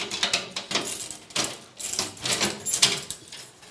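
A key rattles and scrapes in a cabinet lock.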